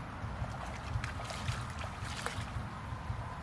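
Water splashes as hands scoop and toss it.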